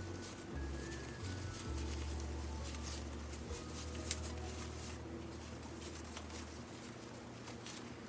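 Gloved hands rub and squish through wet hair.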